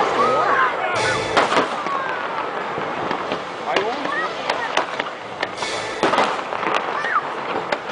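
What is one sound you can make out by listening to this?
Fireworks crackle and fizz loudly.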